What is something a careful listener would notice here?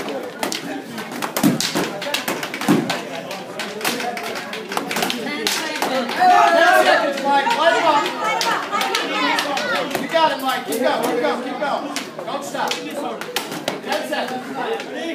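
Footsteps shuffle and stamp on a hard floor.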